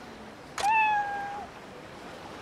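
A cat meows.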